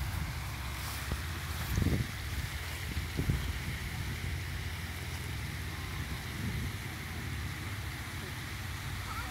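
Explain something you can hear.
A fountain splashes steadily into a pond.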